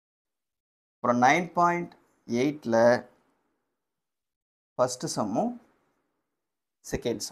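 A man speaks calmly and clearly, close by, in short phrases with pauses.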